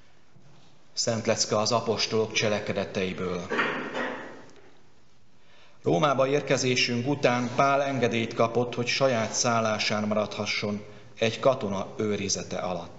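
A man speaks steadily through a microphone in an echoing room.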